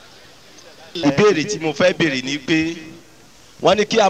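A man speaks loudly into a microphone, heard through loudspeakers.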